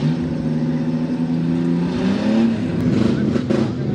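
A truck engine revs hard as it churns through deep mud.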